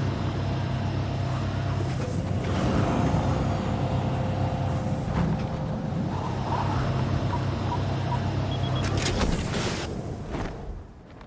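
A jet engine roars steadily and loudly.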